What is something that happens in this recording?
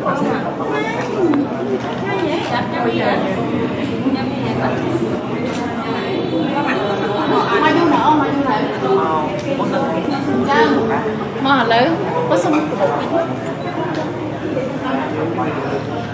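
A woman speaks gently and with animation nearby.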